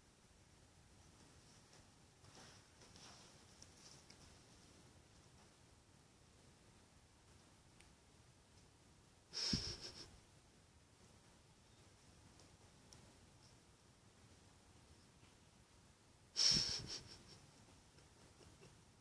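A cat scuffles and rustles on a carpet.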